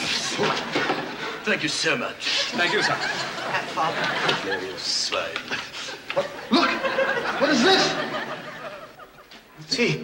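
Several men talk excitedly over one another.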